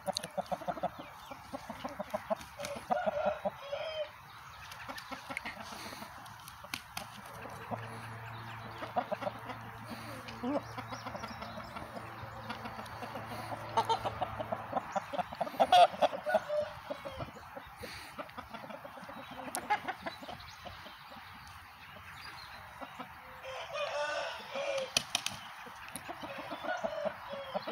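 Roosters cluck and crow nearby outdoors.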